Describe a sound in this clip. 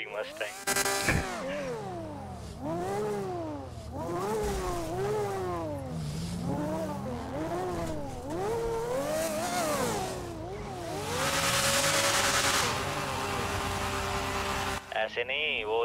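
A sports car engine revs and hums as the car drives.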